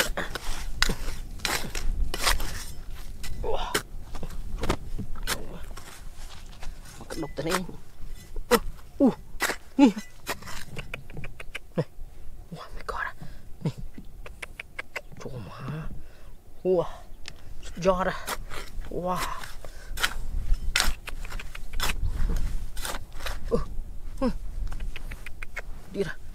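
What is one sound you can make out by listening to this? A metal trowel scrapes and digs into dry, gravelly soil.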